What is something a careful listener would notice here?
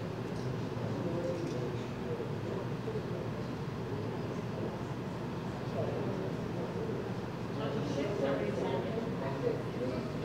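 Adults talk quietly at a distance in a large echoing hall.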